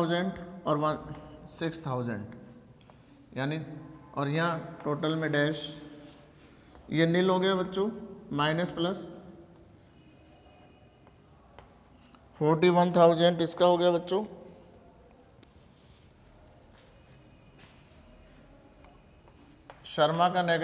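A man lectures close by, in short bursts with pauses.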